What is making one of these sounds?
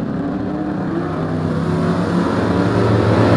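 Engines grow louder near the end as cars pass close by.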